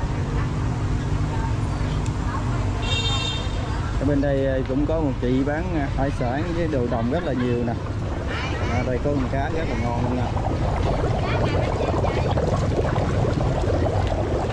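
Water bubbles and churns steadily in tubs.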